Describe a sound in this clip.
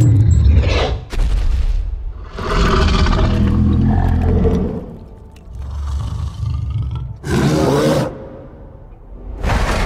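A giant beast roars deeply.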